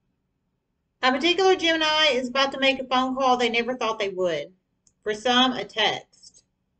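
A woman speaks close by, calmly and clearly.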